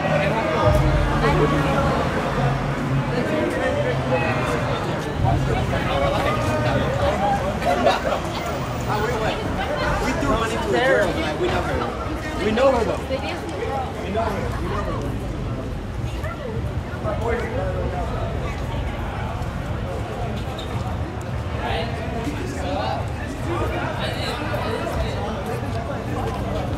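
Many people talk and chatter nearby outdoors on a busy street.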